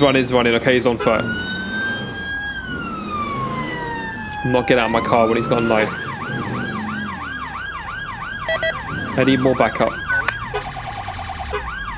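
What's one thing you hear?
A police siren wails and yelps.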